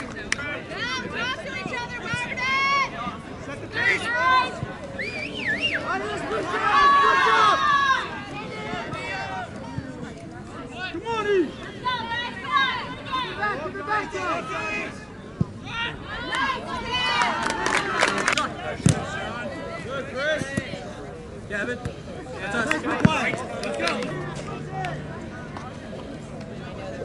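Spectators and young players shout and call out across an open outdoor field.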